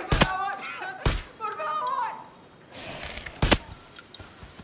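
Rifle shots crack sharply, one after another.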